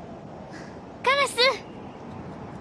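A young girl calls out loudly.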